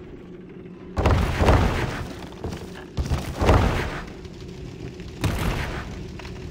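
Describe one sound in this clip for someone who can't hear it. Wooden planks crash and clatter loudly.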